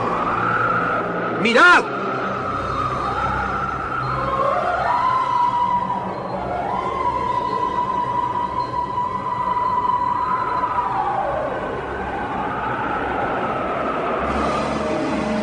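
A group of men shout and cheer excitedly nearby.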